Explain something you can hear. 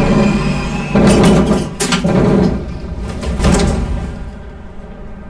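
Air brakes hiss in short bursts as the train comes to a stop.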